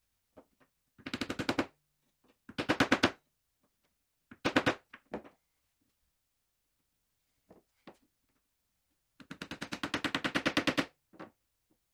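A small mallet taps a metal hinge into a fibreboard panel in quick bursts.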